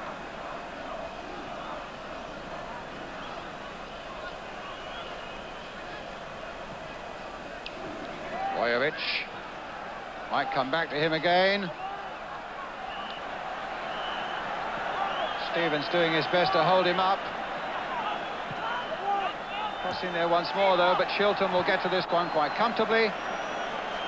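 A large stadium crowd murmurs and roars throughout.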